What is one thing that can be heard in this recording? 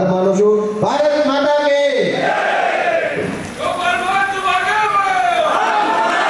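A man shouts with animation into a microphone over loudspeakers.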